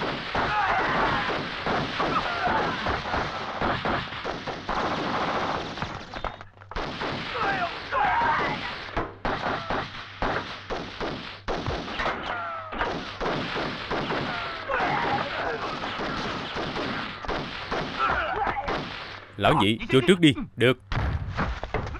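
Guns fire rapid shots in an echoing room.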